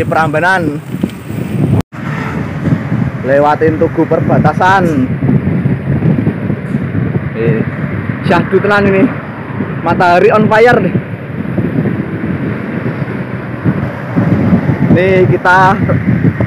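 Wind buffets loudly past as a bicycle rides along.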